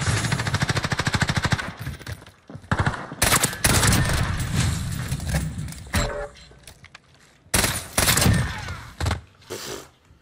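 Gunshots bang loudly in rapid bursts.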